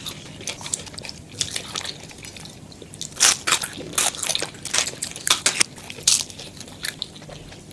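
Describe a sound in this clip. Fingers rustle through crispy food close to a microphone.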